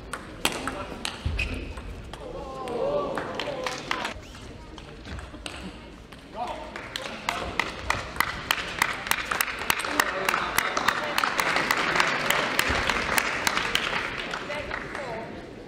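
A table tennis ball clicks quickly back and forth off paddles and the table.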